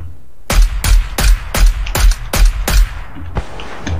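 Rifle shots fire in a quick series of sharp bangs.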